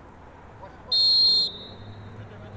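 A referee's whistle blows a short sharp blast.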